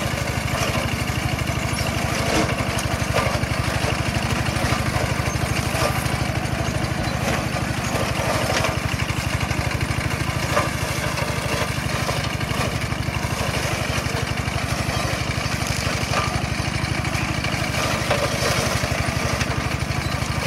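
A single-cylinder diesel two-wheel tractor chugs under load.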